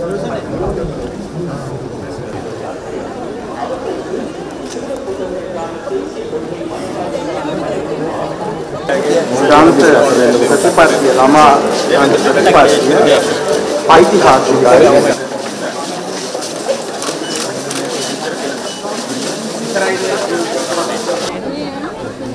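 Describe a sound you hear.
A crowd chatters and murmurs all around.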